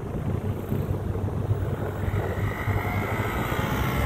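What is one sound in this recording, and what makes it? A motorcycle engine idles and pulls away.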